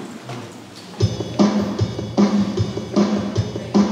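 A woman speaks into a microphone in an echoing hall.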